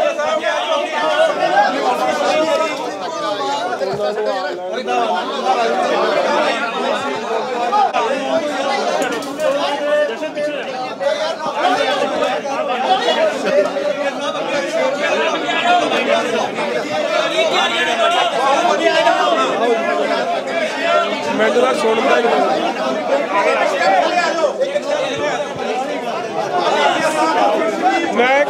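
A middle-aged man speaks steadily into microphones, close by.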